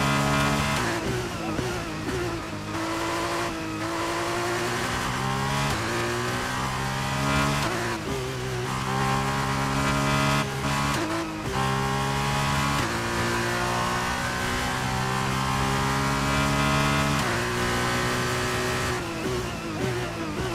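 A racing car engine whines at high revs, rising and dropping in pitch with each gear change.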